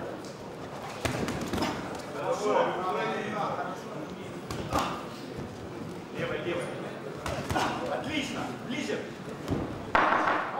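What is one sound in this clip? A crowd murmurs and cheers in a large room.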